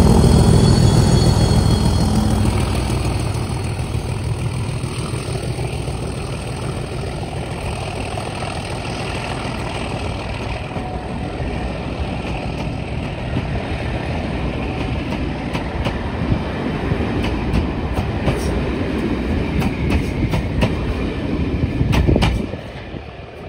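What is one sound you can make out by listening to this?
A passenger train rumbles past on the rails.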